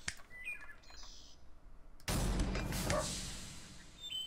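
A game interface gives a short blip as a unit is placed.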